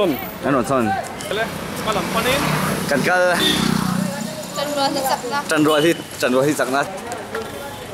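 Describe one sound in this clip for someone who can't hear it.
A young man talks cheerfully close by.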